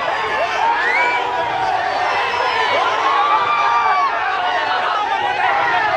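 A man argues loudly nearby.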